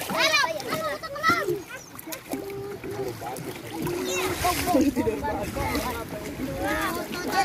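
Water splashes as children wade and paddle.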